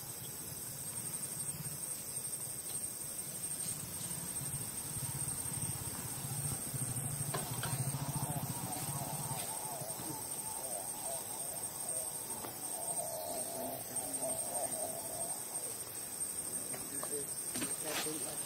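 Leaves rustle softly as monkeys shift on tree branches.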